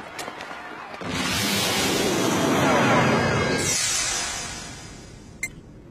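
A jet aircraft roars past overhead.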